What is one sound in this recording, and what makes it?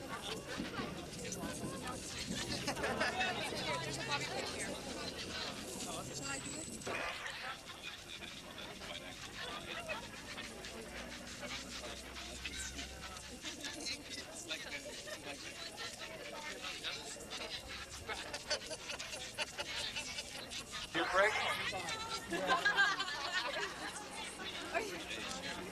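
A crowd of men and women chatter and laugh nearby outdoors.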